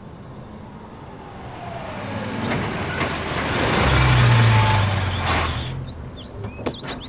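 A pickup truck engine rumbles as the truck drives up and stops.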